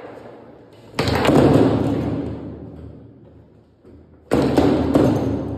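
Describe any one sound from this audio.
A foosball ball clacks against plastic players and the table walls.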